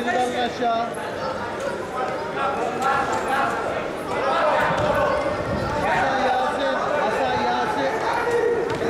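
Spectators shout and call out in a large echoing hall.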